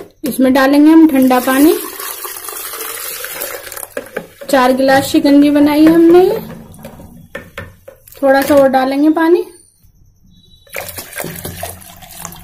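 Water pours into a plastic jug with a splashing gurgle.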